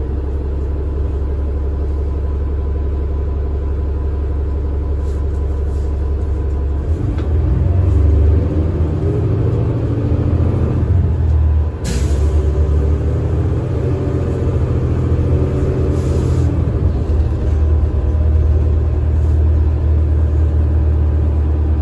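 A bus engine idles with a low, steady rumble close by.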